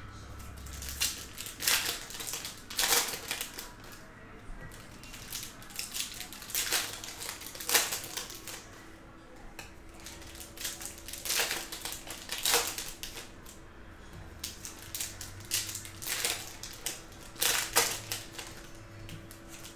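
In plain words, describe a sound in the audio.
Foil card packs crinkle and tear open in bursts.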